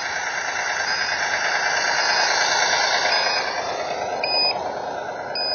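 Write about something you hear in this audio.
A small locomotive engine hums loudly as it passes close by.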